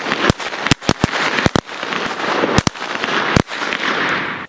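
Firecrackers bang sharply in quick succession outdoors.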